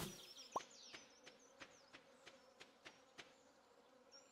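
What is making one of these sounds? Footsteps tap softly on dry ground.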